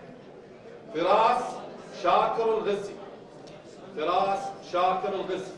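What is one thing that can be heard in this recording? A young man speaks clearly into a microphone, heard through loudspeakers.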